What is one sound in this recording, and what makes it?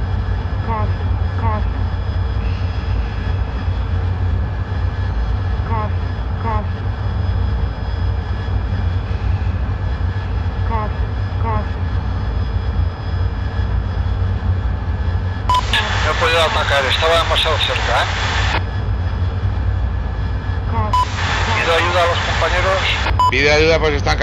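A jet engine roars steadily in a low, constant rumble.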